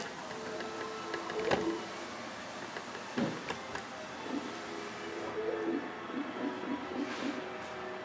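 Light electronic game music plays from a television speaker.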